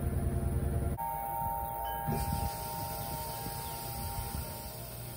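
A washing machine sounds a steady electronic tone.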